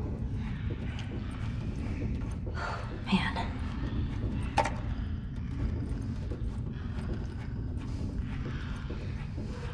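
Footsteps shuffle slowly on a hard floor.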